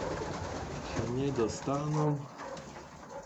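Domestic pigeons coo.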